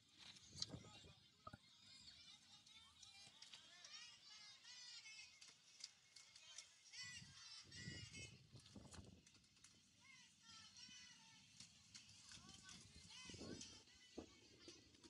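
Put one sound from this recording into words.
Young girls shout and cheer at a distance outdoors.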